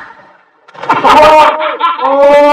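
Water splashes loudly as a man falls into a canal.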